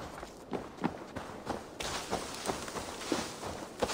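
Leaves and plants rustle as someone brushes through them.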